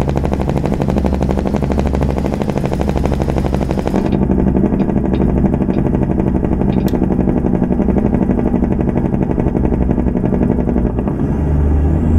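A diesel semi-truck engine drones as the truck cruises under load.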